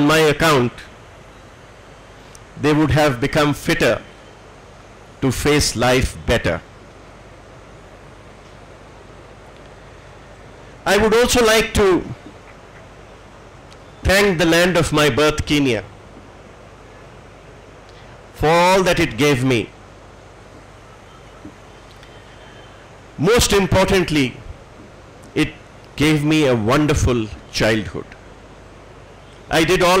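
An elderly man speaks slowly through a microphone, with long pauses between phrases.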